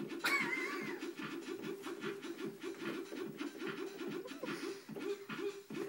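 An electronic keyboard plays a quick, repeating run of notes.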